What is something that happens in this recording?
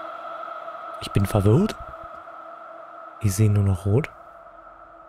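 A man speaks briefly, close to a microphone.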